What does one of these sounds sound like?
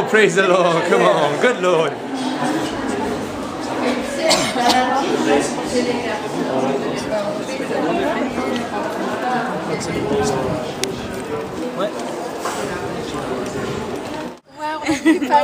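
A group of men and women chatter and laugh nearby.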